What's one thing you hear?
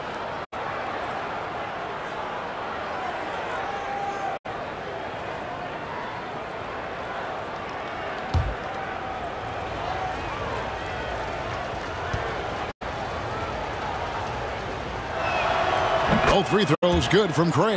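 A large arena crowd murmurs steadily.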